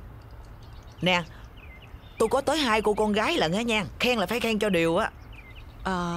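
A middle-aged woman speaks with animation, close by.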